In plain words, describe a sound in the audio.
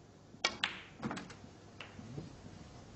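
Snooker balls knock together with hard clicks.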